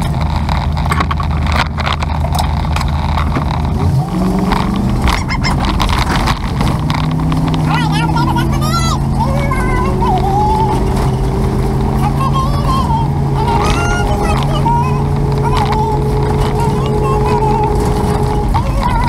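A car engine hums steadily, rising in pitch as the car pulls away and speeds up.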